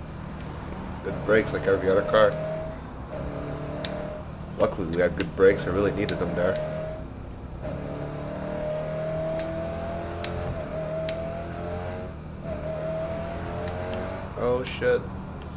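A car engine roars and revs up and down as it speeds along.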